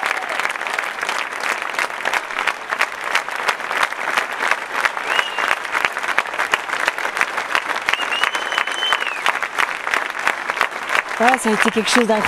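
A large crowd claps in rhythm outdoors.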